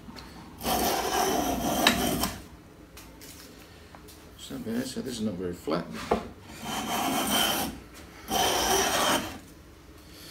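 A hand plane shaves wood in long, rasping strokes.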